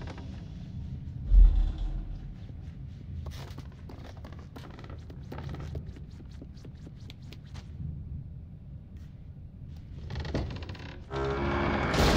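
Small footsteps patter quickly across a wooden floor.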